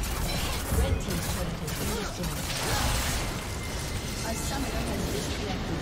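Magical blasts whoosh and crackle in quick succession.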